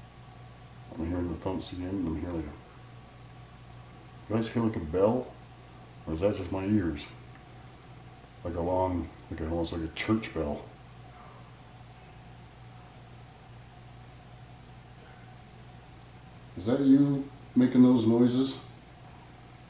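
A middle-aged man speaks calmly close by, in short bursts with pauses.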